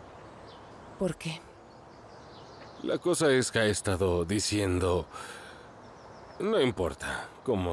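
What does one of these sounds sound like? A middle-aged man speaks calmly and earnestly close by.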